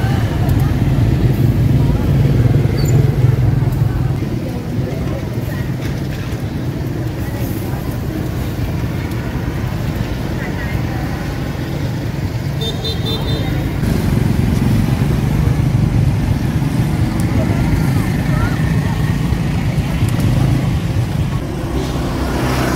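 Motorbike engines hum as scooters ride past on a street.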